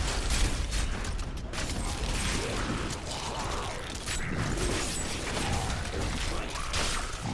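Game spells crackle and burst in a battle.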